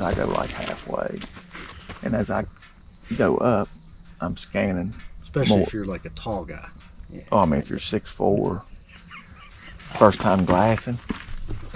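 A man speaks calmly and explains close by, outdoors.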